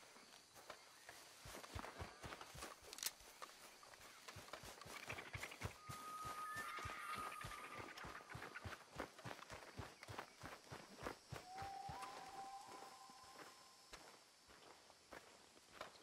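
Footsteps run quickly through grass and undergrowth.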